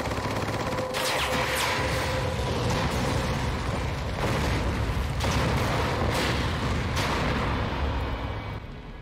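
A fiery explosion roars.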